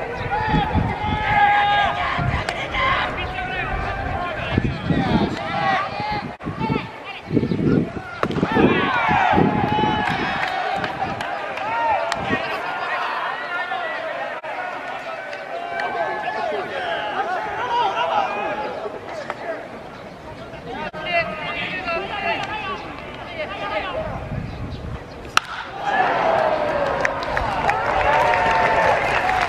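A crowd of spectators cheers and chants nearby.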